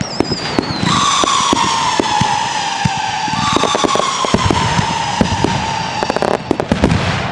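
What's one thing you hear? Fireworks whistle loudly as they shoot upward.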